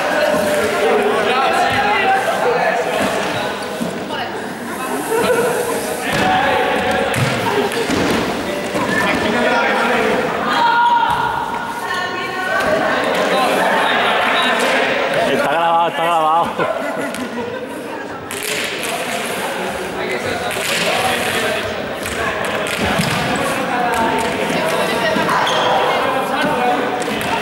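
Many young men and women talk and shout at once in a large echoing hall.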